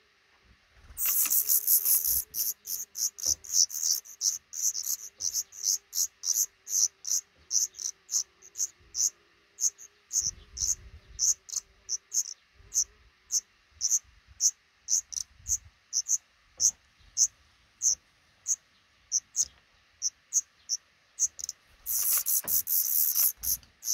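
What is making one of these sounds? Nestling birds cheep loudly and rapidly in a begging chorus.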